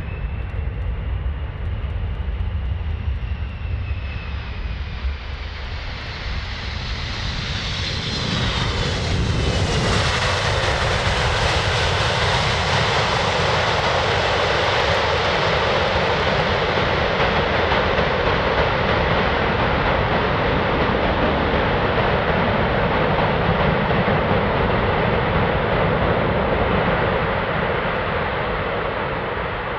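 A large jet's engines roar loudly as the plane rolls down the runway.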